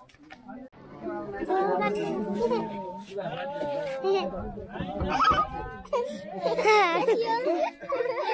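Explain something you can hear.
Young children chatter and shout close by.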